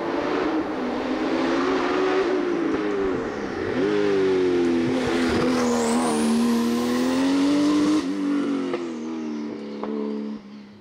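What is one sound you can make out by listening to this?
A race car engine roars loudly as the car speeds past up a hill.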